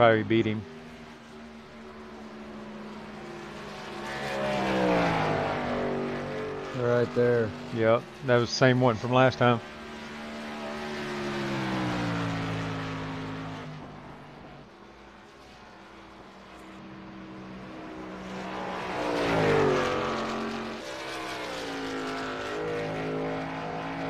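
A race truck engine roars, rising and falling in pitch.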